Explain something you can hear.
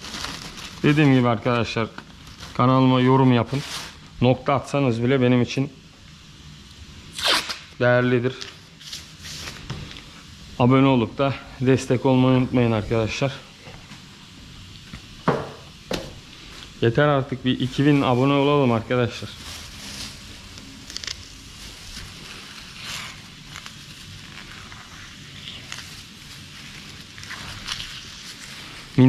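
Plastic sheeting crinkles and rustles under hands.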